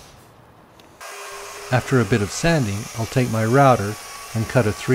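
A router whines loudly.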